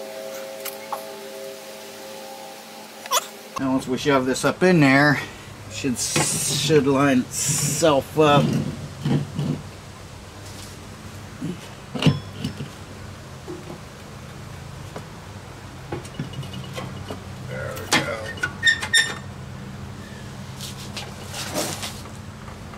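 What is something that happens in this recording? Metal tools clink and knock against a machine.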